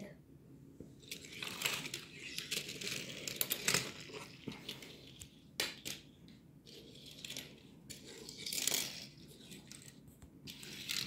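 Small toy cars click and scrape on a tiled floor.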